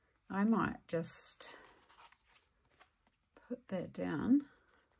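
Paper rustles as it is handled.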